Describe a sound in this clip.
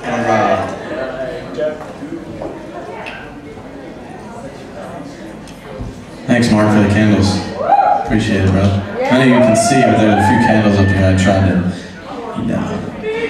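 A man speaks into a microphone with animation, his voice carried over loudspeakers.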